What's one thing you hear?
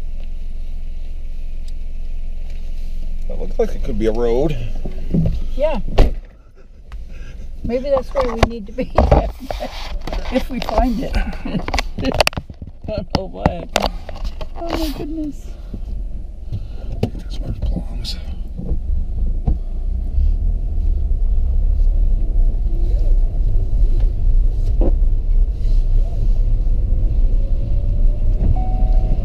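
A car engine rumbles low and steady as the car drives.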